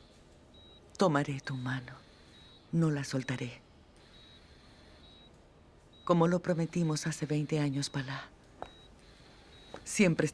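A middle-aged woman speaks softly and close by.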